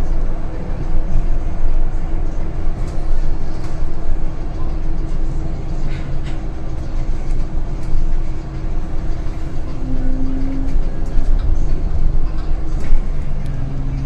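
A bus engine hums steadily as the bus drives along a road.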